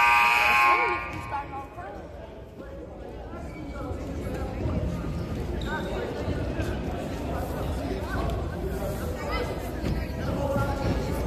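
Young players chatter and call out in a large echoing gym.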